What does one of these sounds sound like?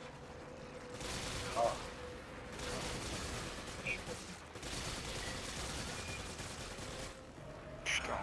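A handgun fires in rapid bursts.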